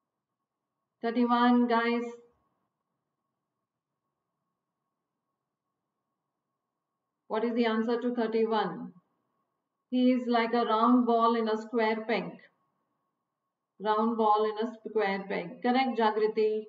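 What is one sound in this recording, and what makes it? A middle-aged woman speaks calmly into a close microphone, with pauses.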